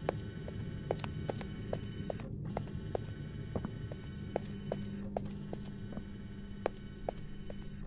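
Footsteps walk quickly on a hard floor.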